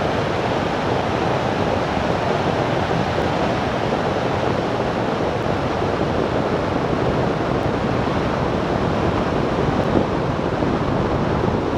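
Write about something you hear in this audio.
Wind rushes loudly past a glider in flight.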